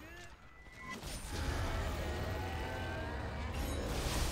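A huge beast growls with a deep, loud rumble.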